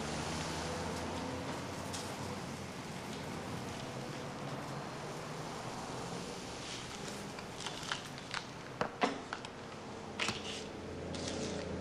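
A woman speaks curtly nearby.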